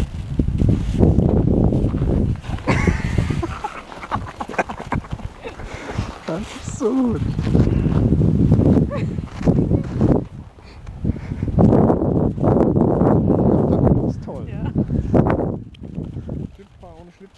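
A dog rolls and scrapes in crunchy snow.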